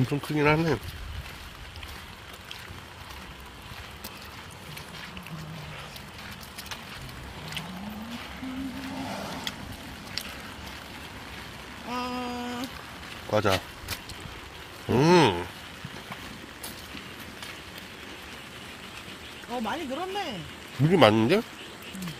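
Footsteps scuff along a wet paved road.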